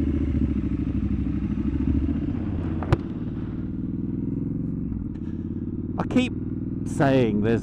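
A motorcycle engine rumbles steadily as the bike rides along.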